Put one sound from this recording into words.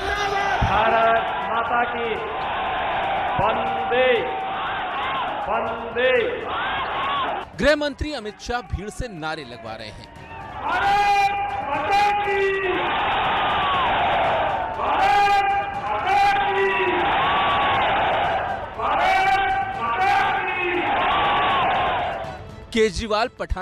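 A large crowd cheers and chants in unison.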